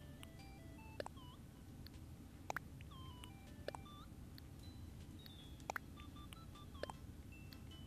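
Brief clicking pops sound when menu options open.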